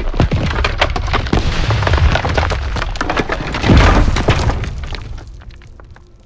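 Debris crashes and clatters down.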